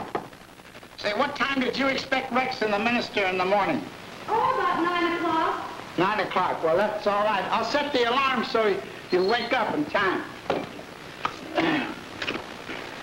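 A man talks with animation over an old, hissy recording.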